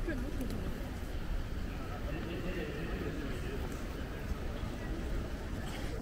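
A crowd of people chatters softly in the distance.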